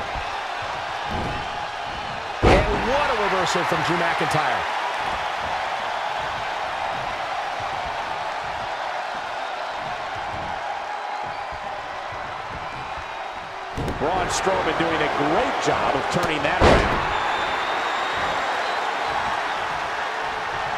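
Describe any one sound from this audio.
A large crowd cheers steadily in an arena.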